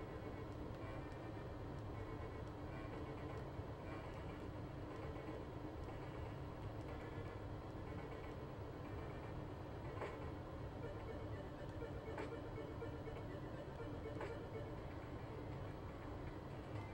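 Upbeat electronic video game music plays steadily.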